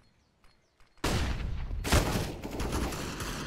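A flash grenade bursts with a loud bang.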